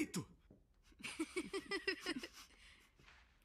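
Two boys laugh.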